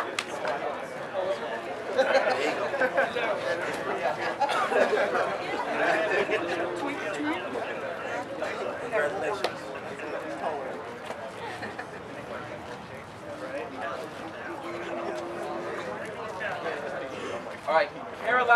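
A man announces loudly to a small group outdoors.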